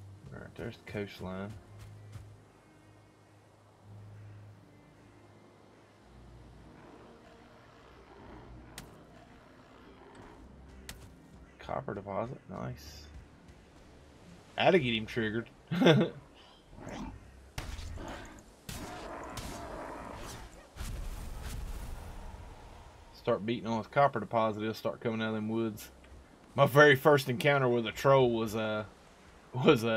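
A middle-aged man talks casually into a close microphone.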